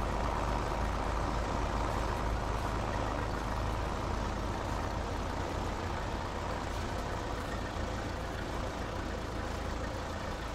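A hay rake rattles as it turns.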